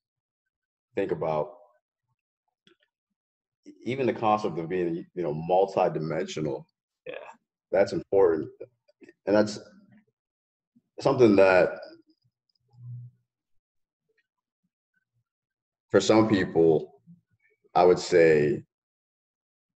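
A young man speaks calmly over an online call, with pauses.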